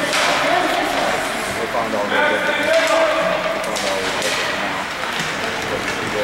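Skates scrape and hiss across the ice in a large echoing hall.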